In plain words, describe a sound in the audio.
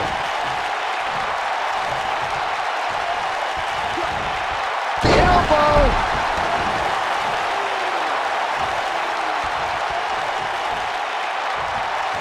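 A large crowd roars steadily in a big echoing arena.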